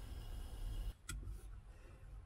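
A soda can pops open with a sharp hiss.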